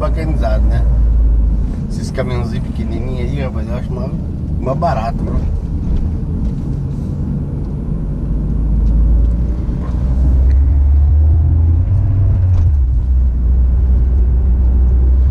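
A car engine hums steadily, with a low rumble from the road heard from inside the car.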